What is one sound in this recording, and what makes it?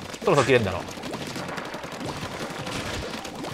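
Toy-like ink guns squirt and splatter in quick bursts.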